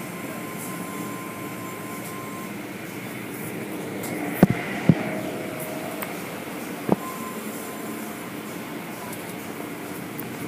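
Rotating brushes whir and slap against a car.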